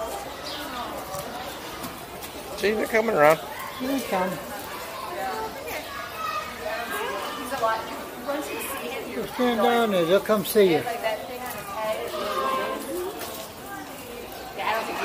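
A young girl talks and exclaims excitedly close by.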